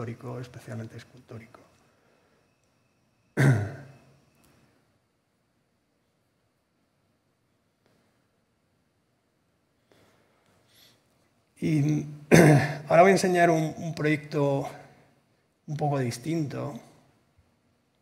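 A middle-aged man speaks calmly through a microphone, in pauses.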